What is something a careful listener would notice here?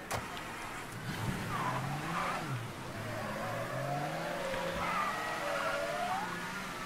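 A car engine revs, rising and falling in pitch as the car drives off.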